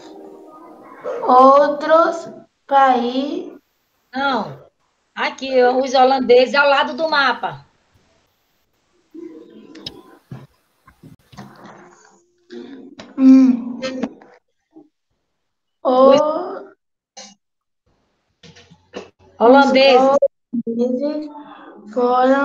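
An elderly woman speaks with animation, close to the microphone over an online call.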